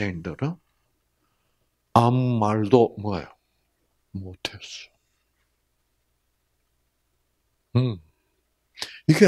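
An elderly man speaks with animation into a microphone, pausing between phrases.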